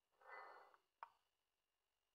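A chess move sound clicks once.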